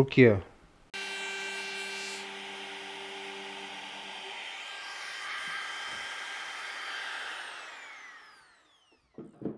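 A small power router whines steadily, then winds down.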